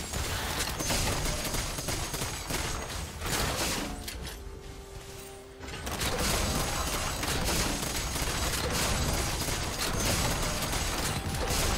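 Game spell effects and hits crackle and clash rapidly.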